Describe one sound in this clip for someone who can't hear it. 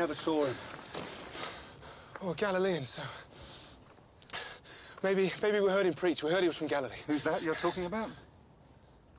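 A man speaks calmly and earnestly up close.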